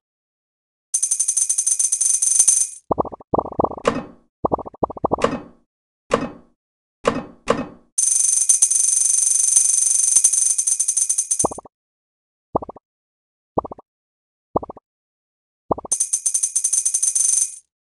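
Bright chiming game sounds ring out as coins are collected.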